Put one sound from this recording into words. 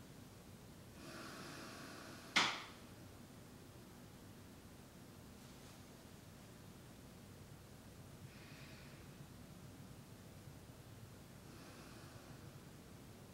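A man breathes slowly and softly close by.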